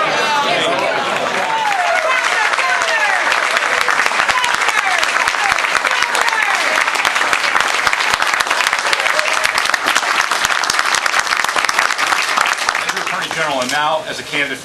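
A crowd claps and cheers loudly in a room.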